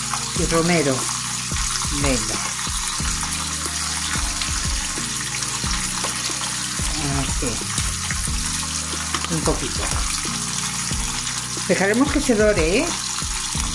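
Meat sizzles in a hot frying pan.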